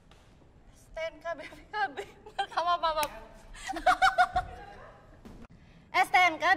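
Young women chat and giggle close by.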